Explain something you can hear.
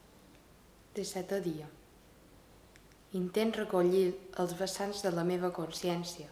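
A young girl reads aloud calmly, close by.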